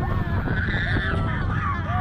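A young man screams on a roller coaster.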